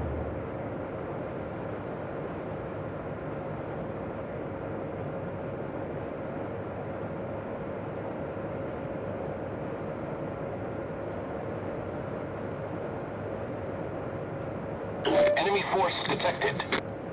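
A ship's engine hums steadily as waves wash along the hull.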